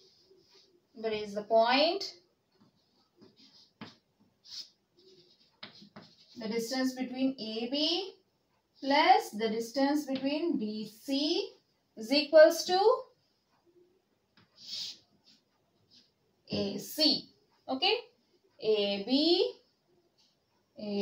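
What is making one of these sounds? A young woman speaks calmly, explaining.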